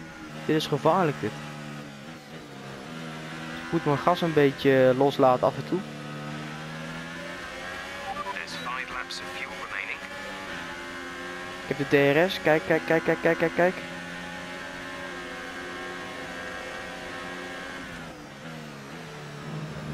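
A V6 turbo Formula One car engine screams at full throttle.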